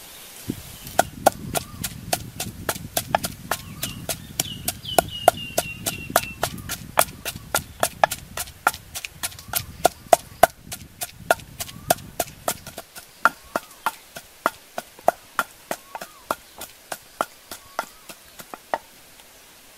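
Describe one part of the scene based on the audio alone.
A wooden pestle pounds in a clay mortar with sharp rhythmic knocks.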